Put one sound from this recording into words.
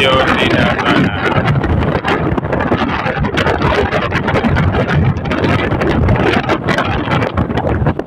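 Wind blows loudly and gusts outdoors.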